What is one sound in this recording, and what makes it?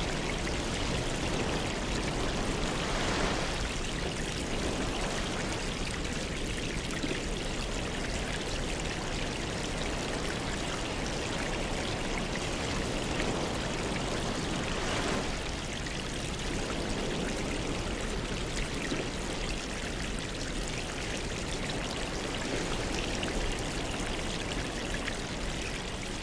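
Air bubbles fizz and gurgle steadily in water.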